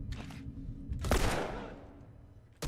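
A pistol fires a loud shot.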